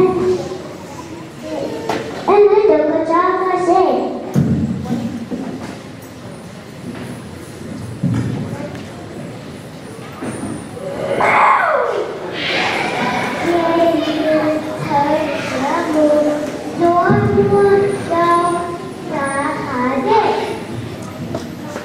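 A young girl sings into a microphone, heard through loudspeakers in a large hall.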